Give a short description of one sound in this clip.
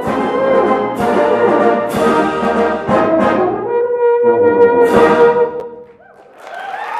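A euphonium plays a melody loudly in an echoing hall.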